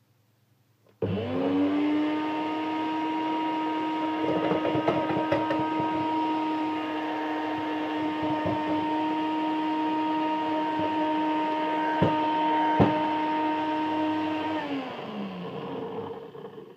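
A blender motor whirs loudly, then winds down.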